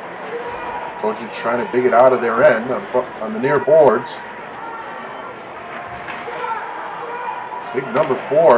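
Spectators cheer and shout loudly in an echoing rink.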